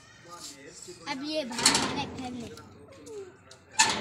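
A boy talks loudly, close by.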